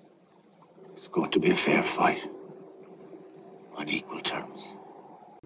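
A middle-aged man speaks quietly and gravely, close by.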